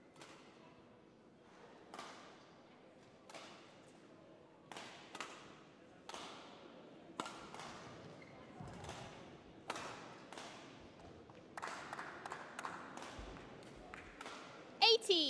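Rackets strike a shuttlecock in a large echoing hall.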